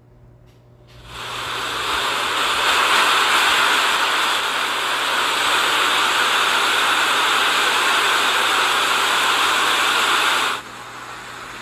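A car splashes through deep floodwater.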